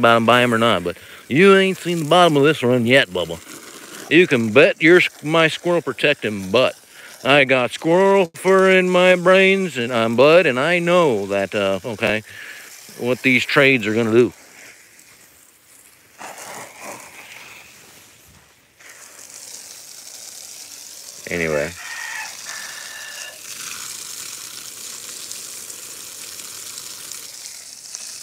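Water gushes from a hose and splashes onto the ground.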